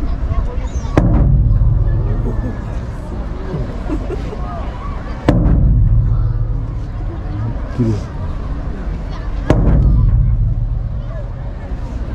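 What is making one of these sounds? A large drum booms slowly, each beat ringing out across an open space.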